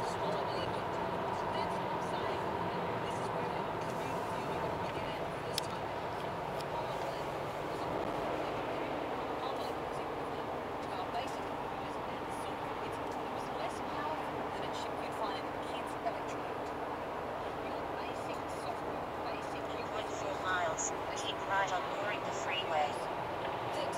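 Tyres roar on the road from inside a car.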